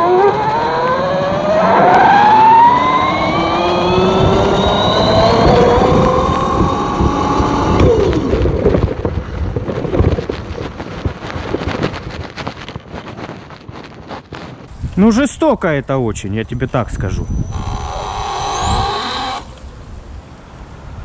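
Tyres roll and crunch over a rough dirt road.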